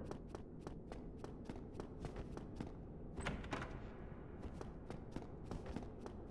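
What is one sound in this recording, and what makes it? Footsteps run quickly and steadily on a hard stone floor.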